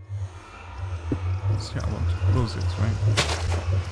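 Shovel scrapes and crunches into dirt repeatedly.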